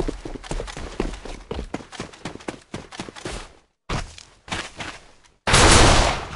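Footsteps tread quickly on hard ground.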